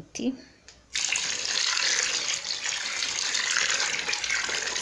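Water pours from a pot into a tub of water and splashes.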